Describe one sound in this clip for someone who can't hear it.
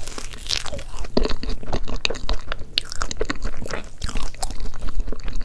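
A woman chews soft cake close to a microphone with wet, smacking mouth sounds.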